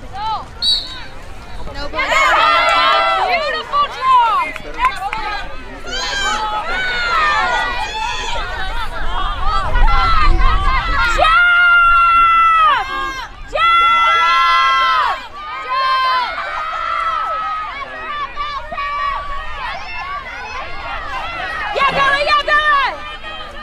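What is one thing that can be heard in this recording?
Young women shout and call out to each other across an open field outdoors.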